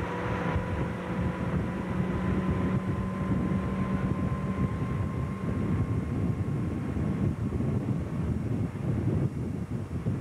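A motorboat engine drones steadily close by.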